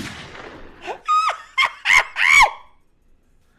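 A young man laughs loudly into a close microphone.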